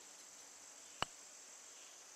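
A putter taps a golf ball once.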